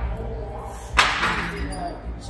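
A weight machine clanks once.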